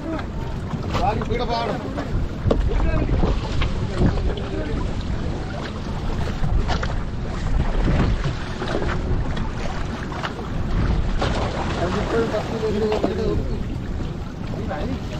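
Water splashes and laps against a boat outdoors.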